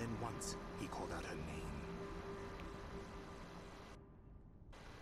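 An elderly man speaks slowly and gravely.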